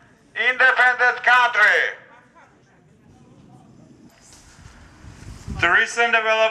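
A man shouts chants through a megaphone outdoors.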